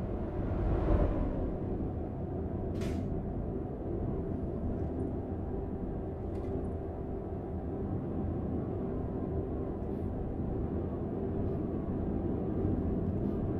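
Tyres roll over the road with a steady rumble.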